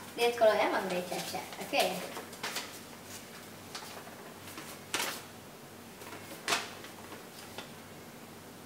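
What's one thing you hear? Paper rustles and crinkles as it is unfolded.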